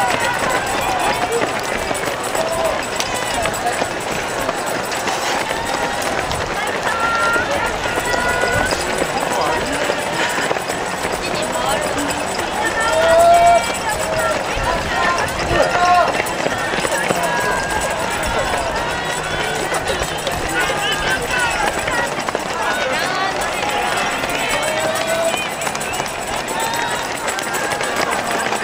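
A crowd of spectators cheers and shouts nearby, outdoors.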